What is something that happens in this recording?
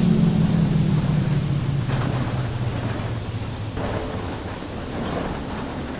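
A bus engine rumbles and slows down.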